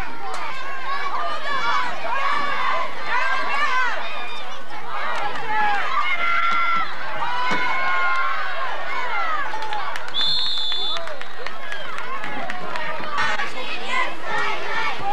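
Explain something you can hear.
A crowd of men and women shouts and cheers nearby.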